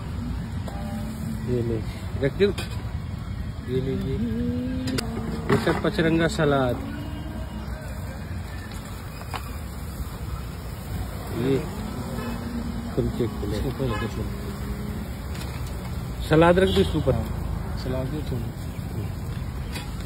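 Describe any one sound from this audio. A paper plate rustles as food is handled.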